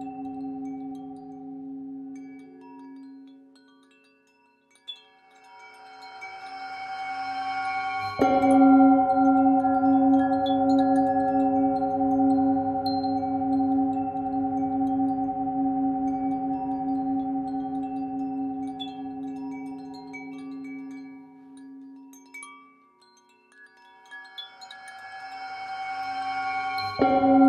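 A metal singing bowl rings with a warm, sustained hum, swelling and fading as a mallet circles its rim.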